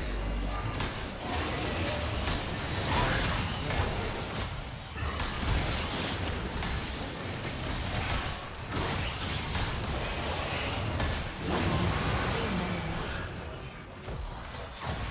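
Video game spells and blows crash and whoosh during a battle.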